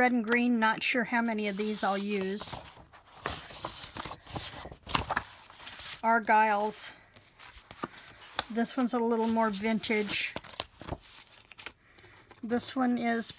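Sheets of paper rustle and flap as they are leafed through.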